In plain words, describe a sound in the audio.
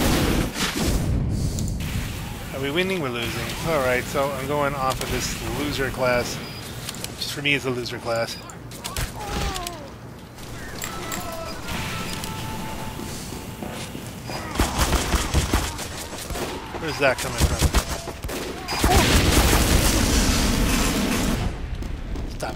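A flamethrower roars in loud bursts.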